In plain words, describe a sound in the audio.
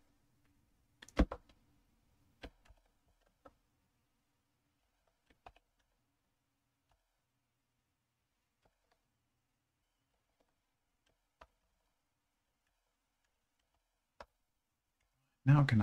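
Computer keys click as a man types.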